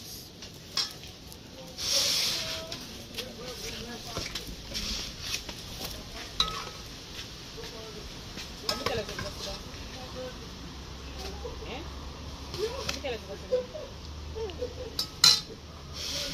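Plates and a spoon clink.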